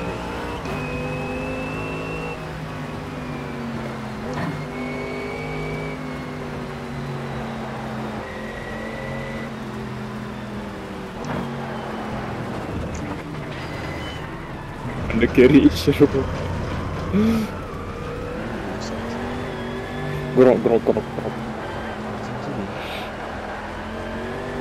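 A racing car engine roars and changes pitch through the gears.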